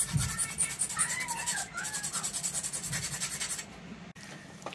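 A chisel scrapes and shaves wood.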